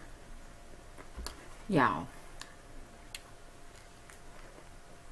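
Raw broccoli crunches as a woman chews it close to the microphone.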